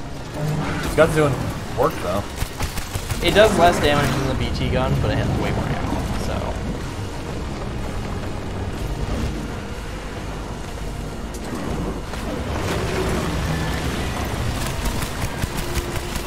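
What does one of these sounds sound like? Heavy rain and wind roar steadily.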